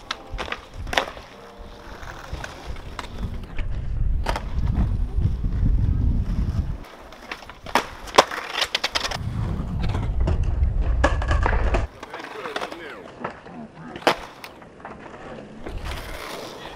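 Skateboard wheels roll and rumble over pavement.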